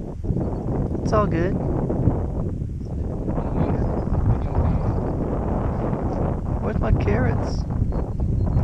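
A man speaks softly nearby.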